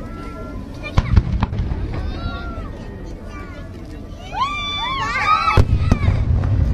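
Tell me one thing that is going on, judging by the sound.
Fireworks bang loudly overhead.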